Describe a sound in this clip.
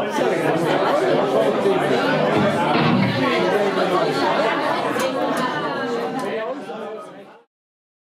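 Electric guitars play loudly.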